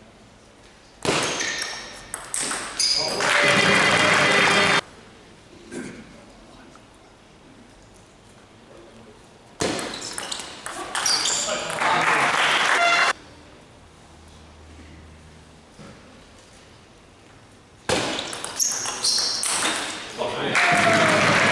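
A ball clicks back and forth between paddles and a table in a large echoing hall.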